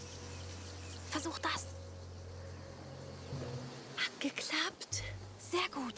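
A young woman talks casually close to a microphone.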